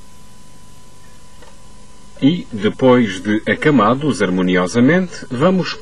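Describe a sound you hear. A metal ladle scrapes and clinks inside a metal cup.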